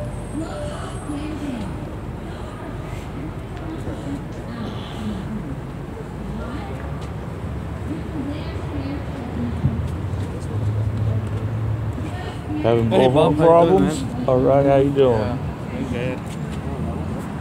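A crowd of adults murmurs and talks outdoors.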